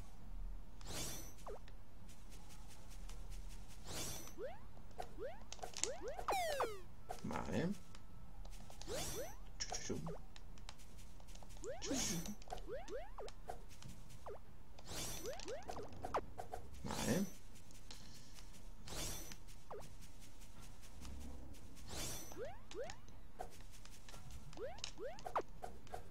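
Short electronic whooshes and zaps sound as a game character attacks.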